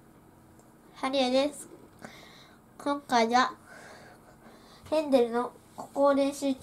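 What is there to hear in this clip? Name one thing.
A young boy speaks calmly and close by.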